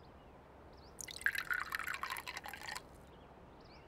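Tea pours and splashes into a cup.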